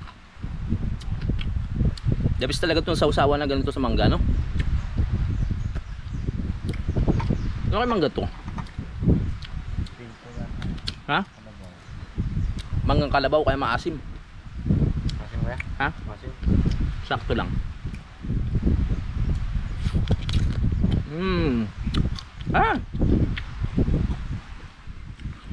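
A young man talks animatedly and close by.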